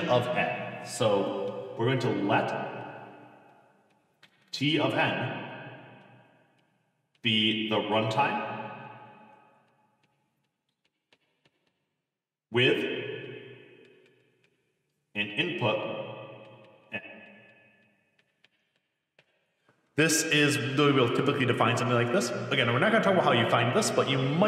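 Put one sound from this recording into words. A man speaks calmly and clearly into a close microphone, in short bursts with pauses.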